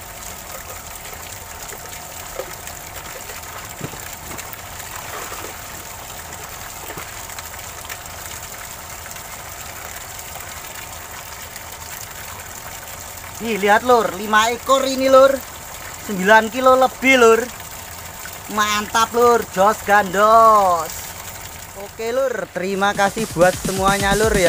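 Water trickles and splashes in a shallow stream.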